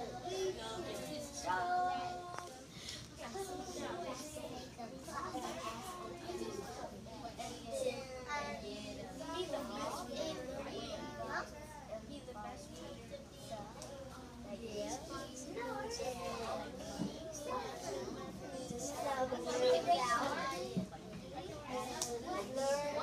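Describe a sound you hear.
Young children chatter and talk over one another close by.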